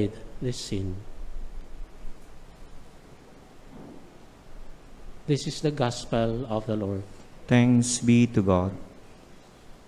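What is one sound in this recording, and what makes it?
A young man reads aloud into a microphone in a calm voice.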